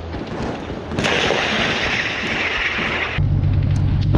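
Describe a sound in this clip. An armoured vehicle's cannon fires a shot.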